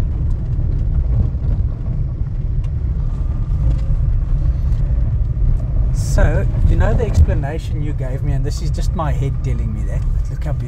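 A vehicle engine rumbles steadily while driving.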